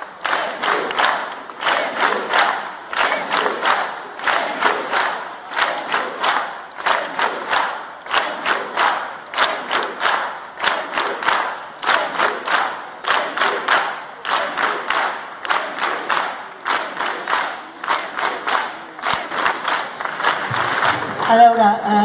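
A large crowd claps in a steady rhythm.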